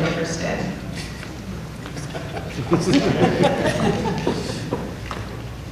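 A woman speaks into a microphone over loudspeakers in a large room.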